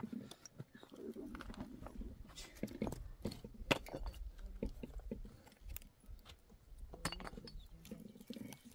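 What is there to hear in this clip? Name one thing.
Footsteps crunch on loose rocky ground.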